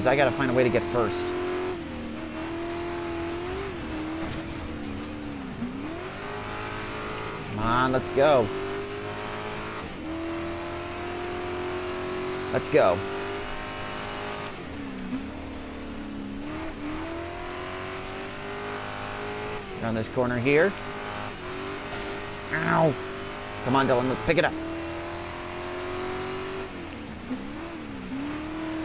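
An engine roars and revs up and down throughout.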